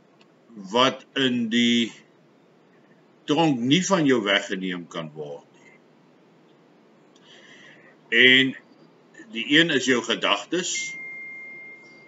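An older man talks calmly and close to a microphone, in short phrases with pauses.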